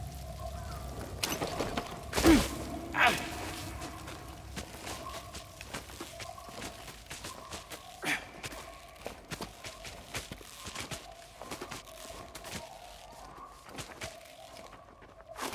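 Leaves rustle as someone climbs through thick vines.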